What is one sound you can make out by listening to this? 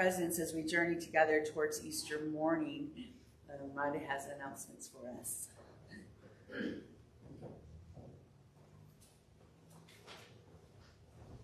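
An elderly woman speaks calmly through a microphone in a large echoing room.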